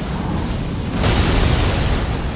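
A loud explosion bursts with crackling debris.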